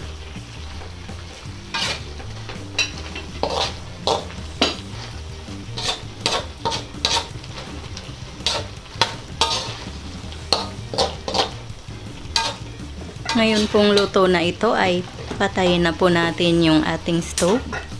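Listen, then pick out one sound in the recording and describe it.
Food sizzles softly in hot oil.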